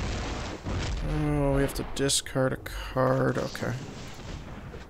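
Magical game sound effects whoosh and chime.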